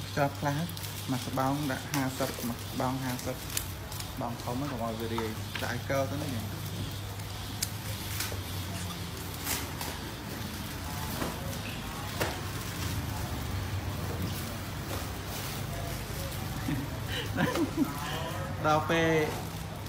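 A man speaks nearby in a conversational voice.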